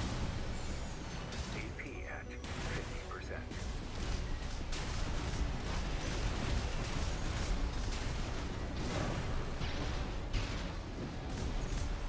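Explosions roar and crackle.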